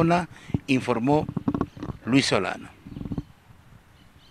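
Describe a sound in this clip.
An elderly man speaks steadily into a handheld microphone outdoors.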